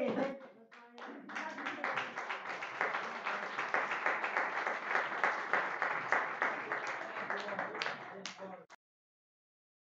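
A small crowd applauds.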